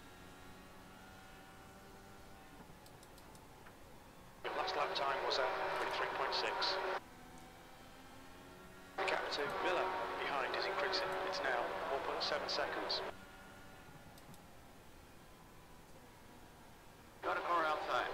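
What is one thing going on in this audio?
A racing car engine drones steadily, rising and falling in pitch.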